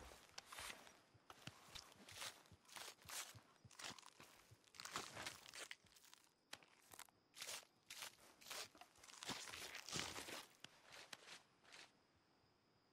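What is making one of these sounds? A knife cuts and tears through an animal's hide with wet rustling.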